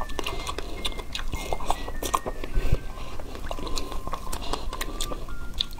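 A young woman bites and chews crisp food wetly close to a microphone.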